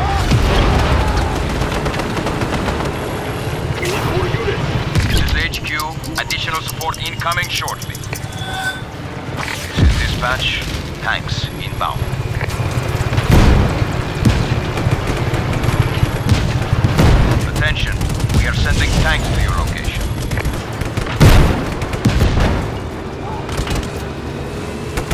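A tank engine rumbles as the tank drives.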